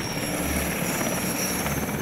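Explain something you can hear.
Helicopter rotors thump steadily nearby.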